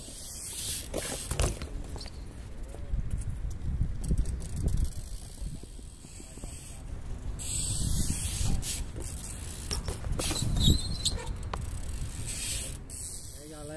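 Bike tyres roll and scrape on concrete.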